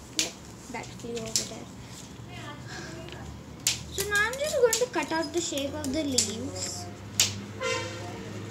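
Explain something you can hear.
A young girl talks calmly and close by.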